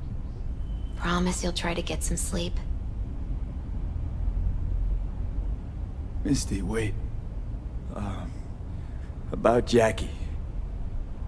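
A young woman speaks softly and close by, in short phrases.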